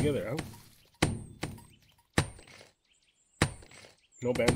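A pickaxe strikes rock a few times.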